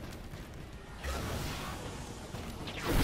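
A sudden rushing whoosh bursts out as a figure leaps.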